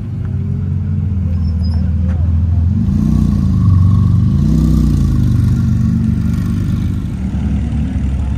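A sports car engine rumbles and revs loudly as it drives slowly past close by.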